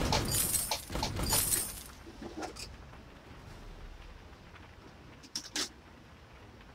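Video game spell and sword effects whoosh and crackle in short bursts.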